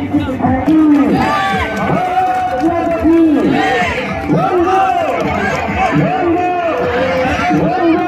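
A crowd cheers and shouts in the distance outdoors.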